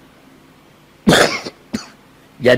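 An elderly man coughs into a microphone.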